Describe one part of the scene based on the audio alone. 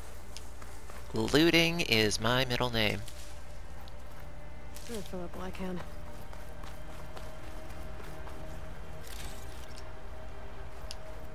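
Footsteps run across dry grass and dirt.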